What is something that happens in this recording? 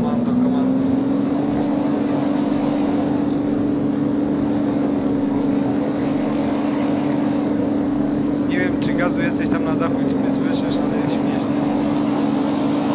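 A vehicle engine drones steadily.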